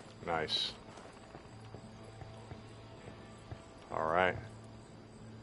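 A young man speaks briefly and casually into a close microphone.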